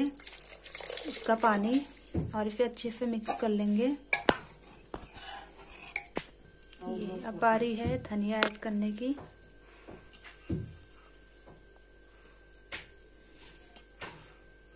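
A metal ladle stirs thick liquid in a pot.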